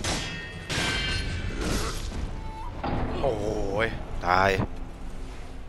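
Swords clash and ring sharply.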